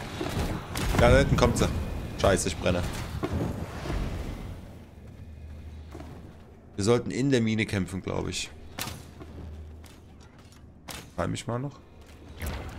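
A young man talks into a close microphone with animation.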